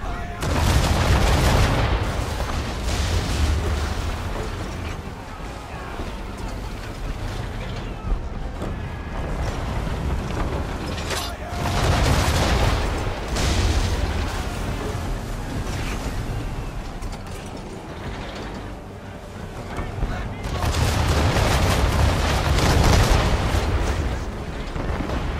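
Cannons boom in heavy bursts nearby.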